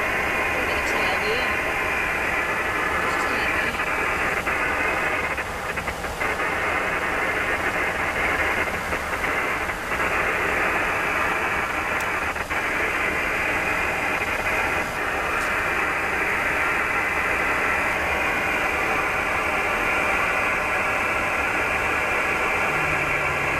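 An aircraft roars steadily in flight, heard from inside.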